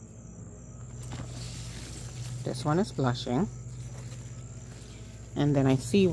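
Leaves rustle softly as a hand brushes through a plant.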